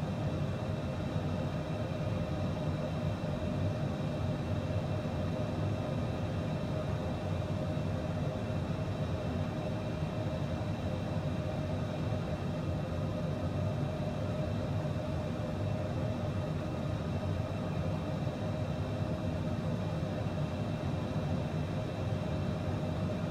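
Jet engines hum steadily inside an aircraft cabin.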